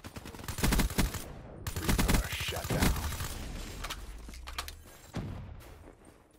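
Gunshots fire in rapid bursts with loud bangs.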